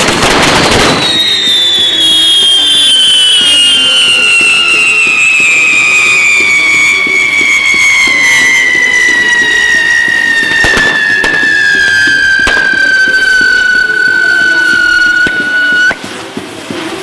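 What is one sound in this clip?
A spinning firework whistles shrilly, its pitch slowly falling before it cuts off.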